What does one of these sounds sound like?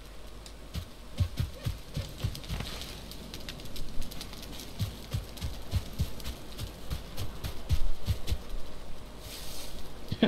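Footsteps thud on the ground at an even pace.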